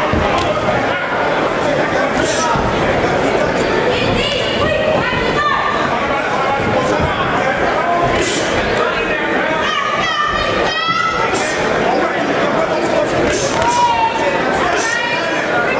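A crowd shouts and cheers in a large hall.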